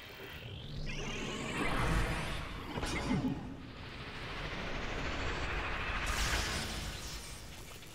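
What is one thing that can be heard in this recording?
Electricity crackles and buzzes loudly.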